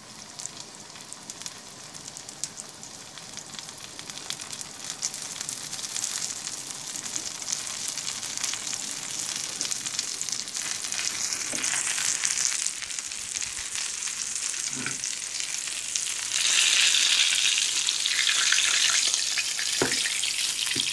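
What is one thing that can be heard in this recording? Oil sizzles and crackles in a frying pan.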